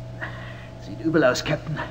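A man speaks through a radio transmission.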